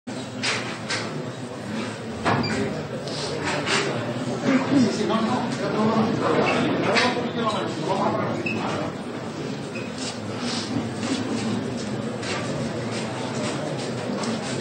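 A crowd murmurs and shuffles nearby.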